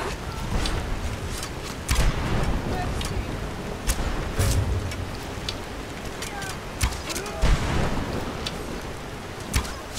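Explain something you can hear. A bowstring snaps as arrows are loosed.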